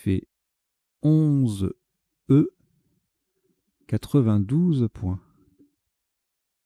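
A man speaks calmly through a microphone in short bursts.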